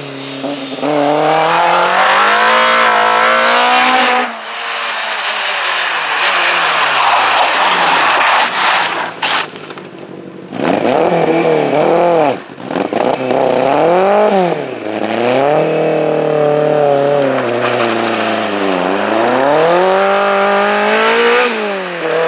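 A rally car engine roars loudly, revving up and down as gears change.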